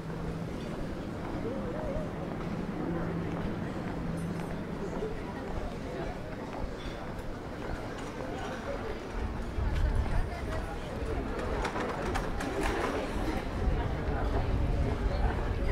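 Many people chat in a lively murmur outdoors.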